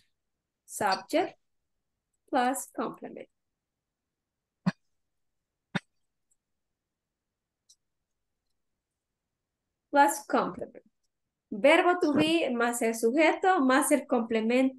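A woman speaks through an online call, calmly explaining in bursts.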